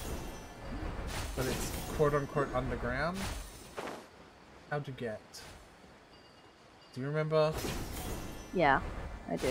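A magical chime sparkles and whooshes.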